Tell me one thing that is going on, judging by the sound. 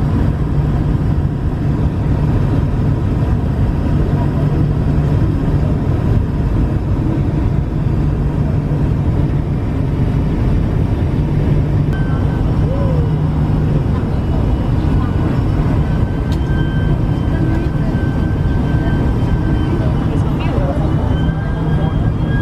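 Jet engines roar steadily inside an aircraft cabin.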